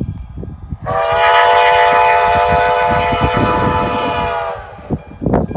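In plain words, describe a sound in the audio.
A steam locomotive's chime whistle blows one long chord in the distance.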